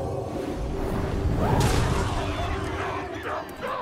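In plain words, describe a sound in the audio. A fiery explosion roars and crackles.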